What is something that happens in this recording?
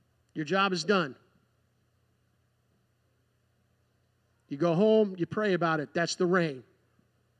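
A man speaks through a microphone and loudspeakers in a large room.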